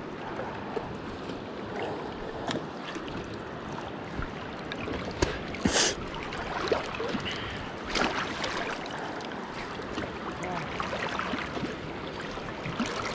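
Water laps and splashes steadily around a small boat.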